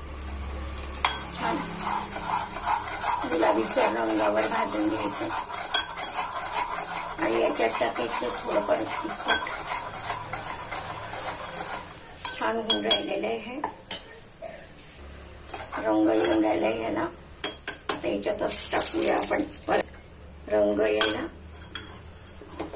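A spoon stirs and clinks against a metal pot.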